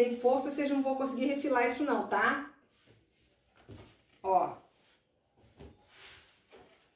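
Hands rub and slide over cloth.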